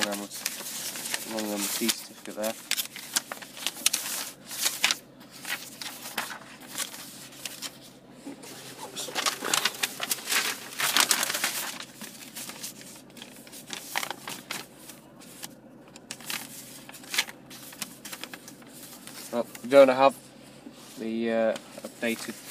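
Paper sheets rustle and crinkle as they are handled.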